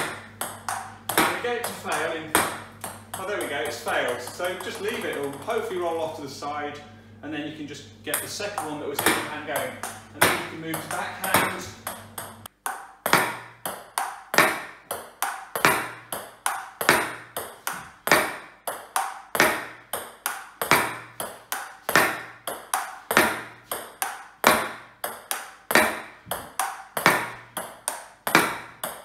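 A ping-pong ball bounces repeatedly on a table with sharp clicks.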